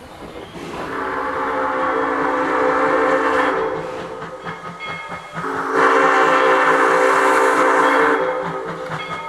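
A steam locomotive whistle blows long, loud blasts.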